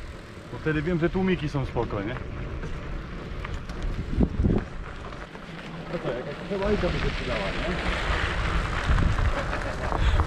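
Bicycle tyres crunch over a gravel track.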